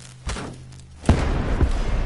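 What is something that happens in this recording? A gun fires with loud cracks.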